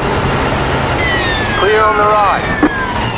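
A racing car engine's pitch slowly drops as the car brakes.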